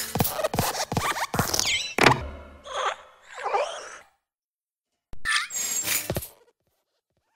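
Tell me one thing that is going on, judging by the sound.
A small desk lamp hops with light metallic thumps.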